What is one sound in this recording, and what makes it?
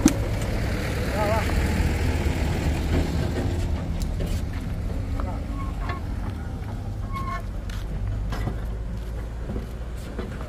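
Men talk to each other outdoors.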